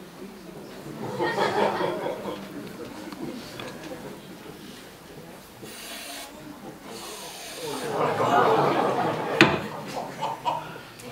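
An audience claps in a large hall.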